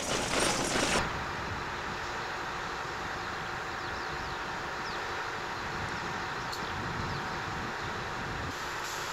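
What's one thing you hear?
A diesel engine idles steadily nearby.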